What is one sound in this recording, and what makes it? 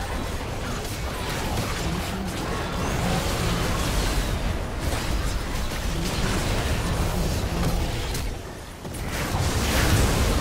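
Magic blasts and weapon hits crackle and burst in a busy game battle.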